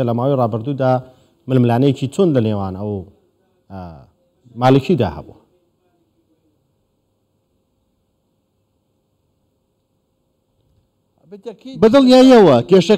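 An older man speaks calmly into a microphone, with pauses.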